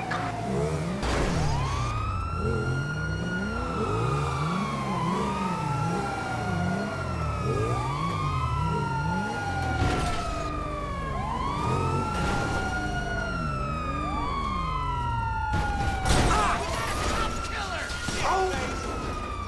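A police siren wails in long rising and falling sweeps.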